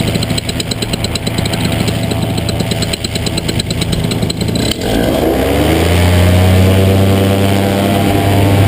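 A small motor buzzes close by, then whines up and down in pitch.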